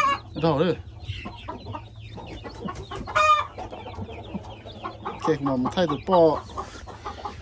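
A hen squawks loudly close by.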